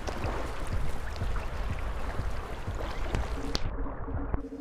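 Rain pours down steadily outdoors.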